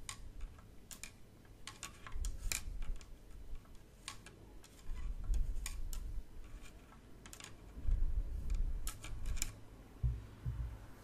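A wooden stick taps and brushes softly close by.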